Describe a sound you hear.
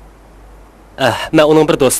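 A man talks into a telephone.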